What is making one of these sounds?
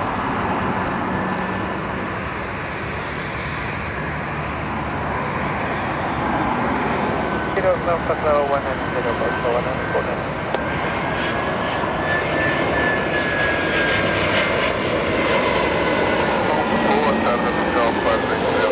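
A jet airliner roars steadily overhead as it comes in low.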